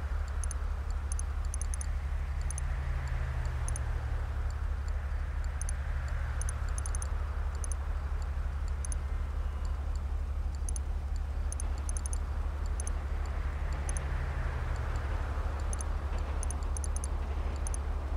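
Short, soft electronic clicks sound again and again as menu buttons are pressed.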